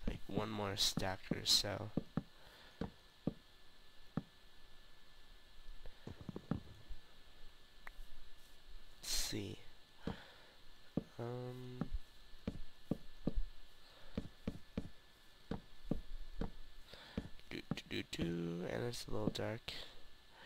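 Wooden blocks are placed with short, soft knocks.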